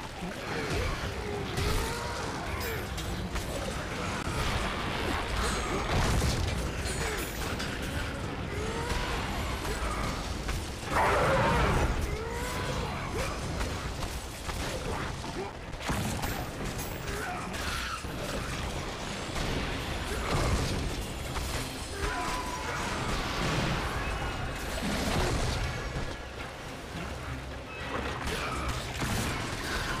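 Blades slash and strike again and again in a fast fight.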